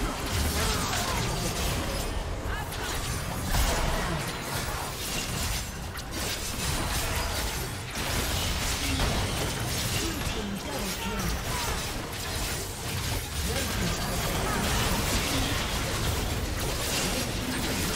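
Game spell effects crackle and boom during a fast battle.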